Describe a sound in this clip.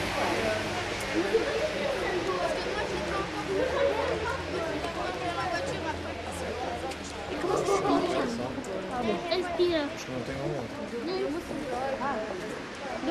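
A crowd of children and adults chatters outdoors nearby.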